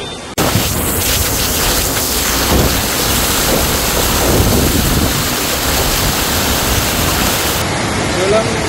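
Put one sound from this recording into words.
A car drives through water on a wet road.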